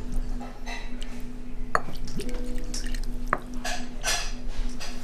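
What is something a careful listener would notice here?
A thick sauce pours softly from a small jug into a bowl.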